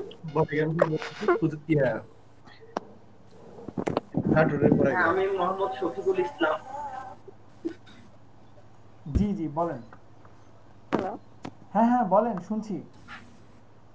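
Young men and women talk briefly in turn over an online call.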